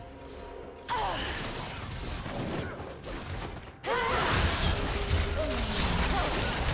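Magical spell effects whoosh and crackle during a fight.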